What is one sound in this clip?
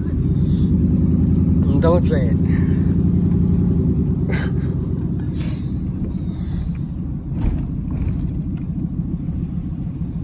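A car engine rumbles steadily from inside the car.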